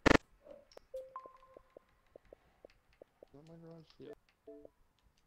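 Short electronic beeps sound.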